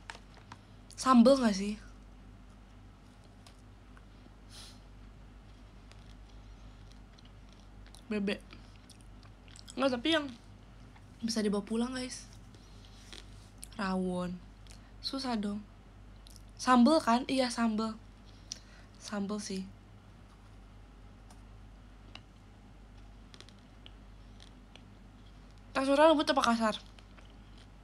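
A young woman speaks softly and close to a microphone, in short bursts.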